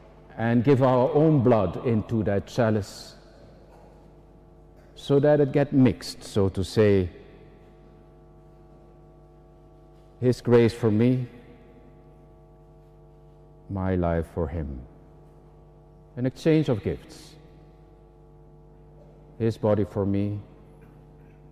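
An elderly man speaks slowly and solemnly into a microphone, with long pauses, in a large echoing hall.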